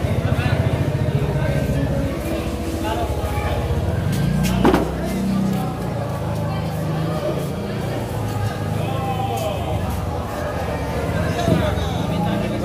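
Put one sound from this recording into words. A knife chops through fish onto a wooden block with dull knocks.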